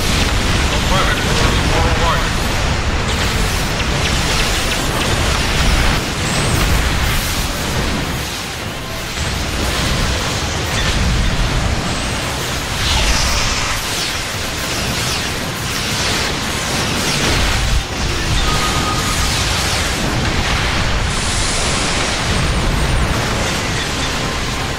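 Laser weapons fire and hum in rapid bursts.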